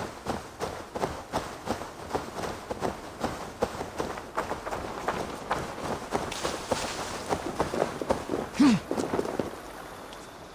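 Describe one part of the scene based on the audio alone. Footsteps crunch through dry grass at a steady run.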